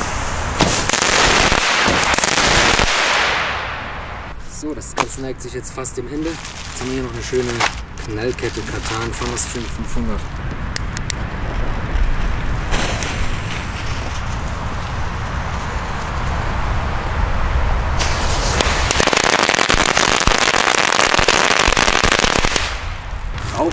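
A firework fountain hisses and crackles loudly outdoors.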